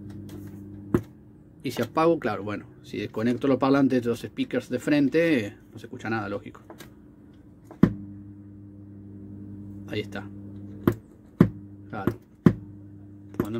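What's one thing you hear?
A push button on an amplifier clicks sharply.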